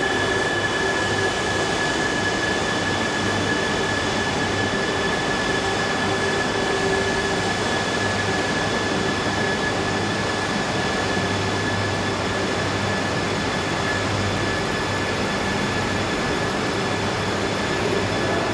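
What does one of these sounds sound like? A train approaches slowly with a low rumble, rolling along the rails.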